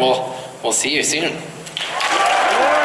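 A young man speaks with animation into a microphone over loudspeakers in a large hall.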